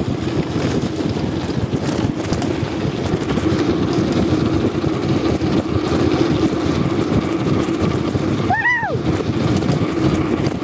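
Bicycle tyres roll over a rough paved road.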